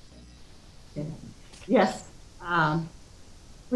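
An elderly woman speaks warmly over an online call.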